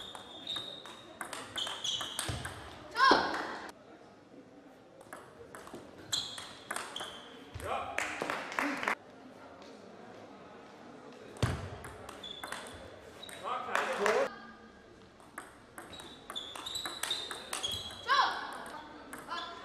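Shoes squeak on a sports floor.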